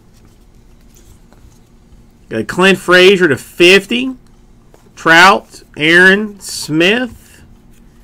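Trading cards rustle and slide against each other as they are shuffled by hand.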